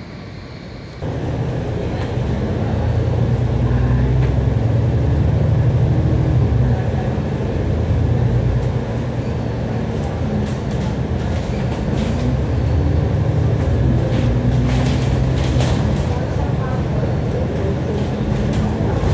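A double-decker bus's diesel engine drones from on board as the bus pulls away and accelerates.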